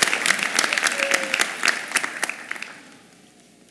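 An audience claps and cheers in a large hall.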